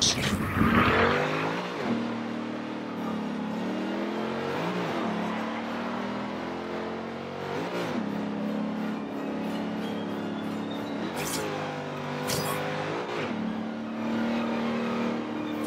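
A sports car engine roars and shifts up through the gears as it accelerates.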